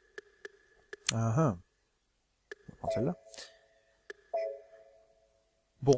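Short electronic menu beeps sound as a selection cursor moves.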